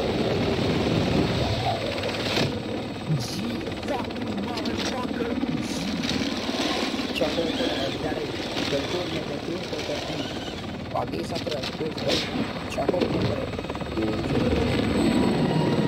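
A helicopter's rotor thumps loudly and steadily overhead.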